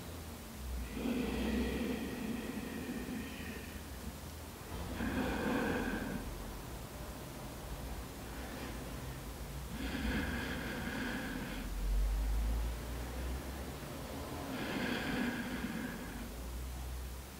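A young woman speaks softly and calmly in short phrases.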